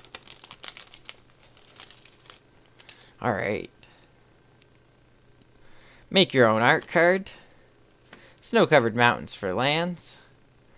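Playing cards shuffle and slide against each other.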